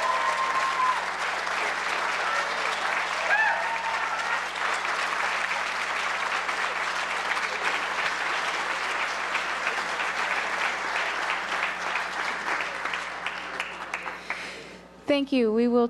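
A large audience applauds in a big hall, then the clapping fades away.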